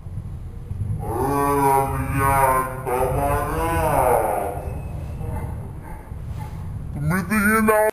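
A young man sings loudly nearby, with strong held notes.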